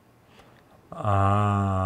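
A man makes a long, loud drawn-out cry.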